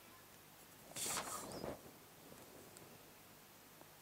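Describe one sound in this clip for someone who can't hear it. A pencil scratches along paper.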